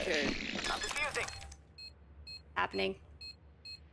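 A young woman speaks into a headset microphone.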